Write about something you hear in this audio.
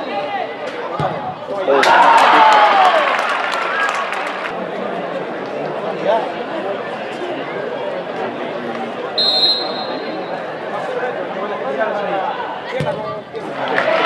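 A foot kicks a football with a thud.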